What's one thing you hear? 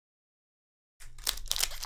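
Foil packs rustle and crinkle as they are handled.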